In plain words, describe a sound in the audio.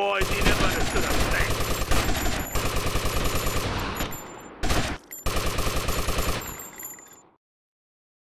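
Automatic gunfire rattles in rapid bursts in a large echoing hall.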